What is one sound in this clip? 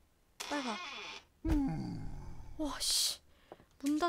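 A door opens with a creak.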